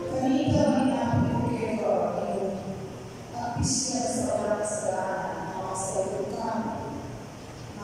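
A choir of men and women sings together in an echoing room.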